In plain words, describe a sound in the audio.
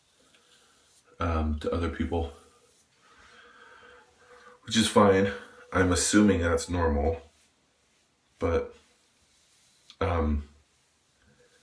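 A razor scrapes softly across a shaved head.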